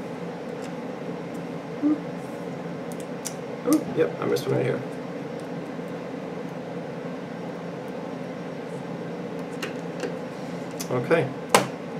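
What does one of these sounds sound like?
A small screwdriver scrapes and clicks against tiny screws.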